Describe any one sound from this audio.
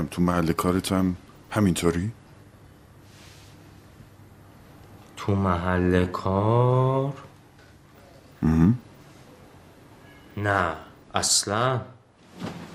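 A middle-aged man speaks calmly and closely in short phrases.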